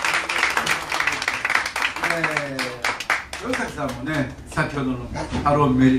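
A small acoustic string band plays a lively tune.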